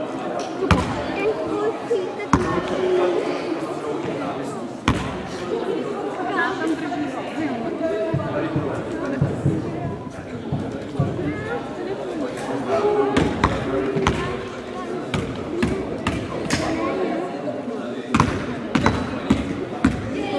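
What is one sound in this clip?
A man speaks with animation to a group of children, close by, in an echoing hall.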